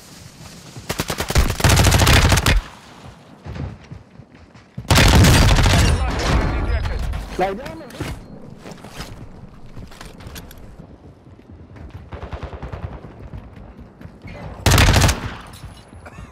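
Automatic gunfire rattles in short, loud bursts.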